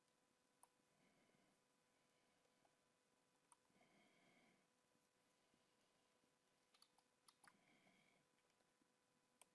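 A man speaks quietly and calmly into a close microphone.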